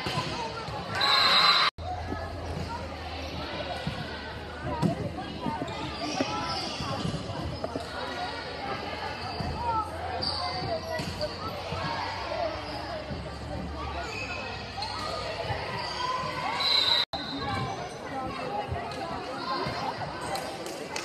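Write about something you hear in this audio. A crowd of spectators chatters in a large echoing gym.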